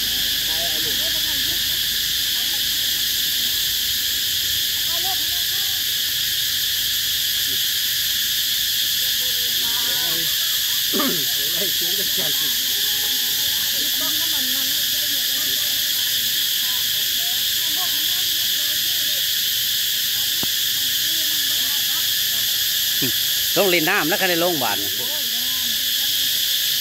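Young women chat nearby.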